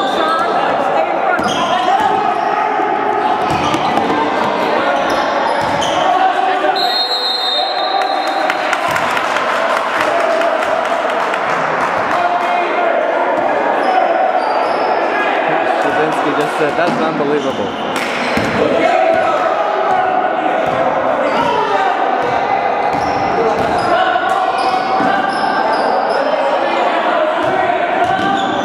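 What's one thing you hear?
Young men shout to each other across an echoing gym.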